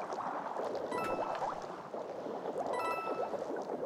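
Coins chime as a game character collects them.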